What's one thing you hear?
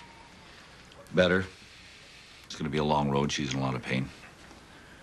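A middle-aged man answers in a low, calm voice, close by.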